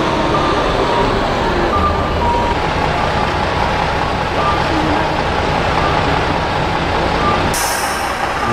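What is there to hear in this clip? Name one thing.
Traffic rumbles past on a street outdoors.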